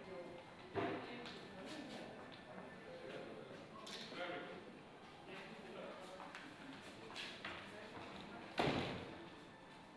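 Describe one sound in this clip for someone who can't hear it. Cardboard boxes shuffle and tap on a table.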